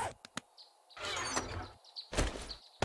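A wooden box lid creaks open.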